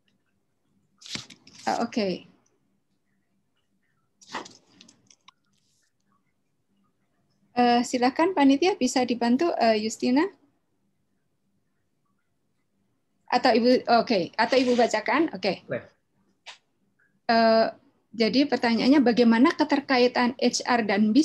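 A woman speaks calmly over an online call.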